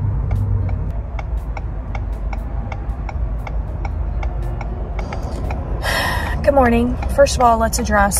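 A car engine hums low and steady inside the car.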